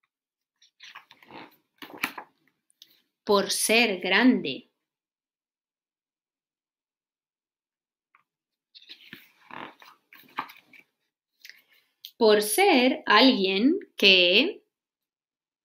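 A woman reads aloud expressively, close to a microphone.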